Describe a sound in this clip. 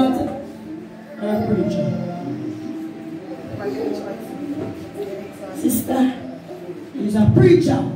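Several women murmur and talk.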